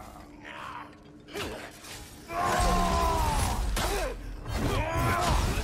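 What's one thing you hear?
Weapons clash and thud in a fight.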